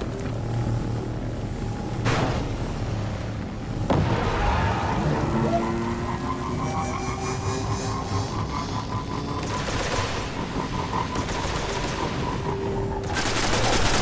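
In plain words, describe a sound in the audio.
A hover bike's engine hums and whooshes steadily.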